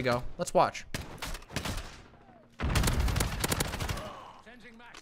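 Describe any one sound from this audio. Gunfire from a video game rattles in rapid bursts.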